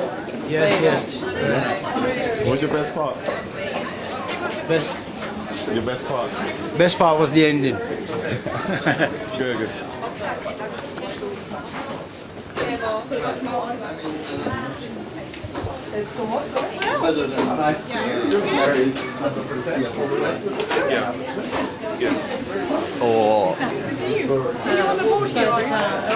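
A crowd of men and women chatter all around.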